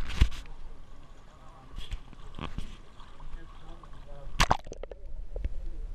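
Water splashes as someone wades in shallow sea.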